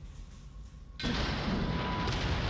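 A blast booms loudly.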